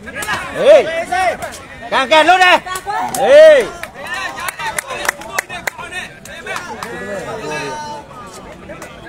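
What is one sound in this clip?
A crowd of spectators shouts and cheers excitedly outdoors.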